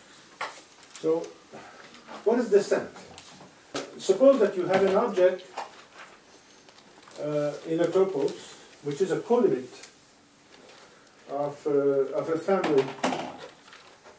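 A middle-aged man speaks calmly, as if lecturing in a hall.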